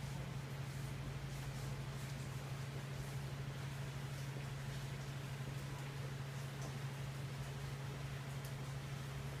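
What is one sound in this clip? A fan hums steadily.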